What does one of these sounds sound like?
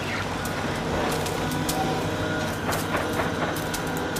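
An excavator engine rumbles nearby.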